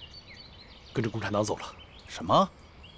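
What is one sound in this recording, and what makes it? A man answers calmly up close.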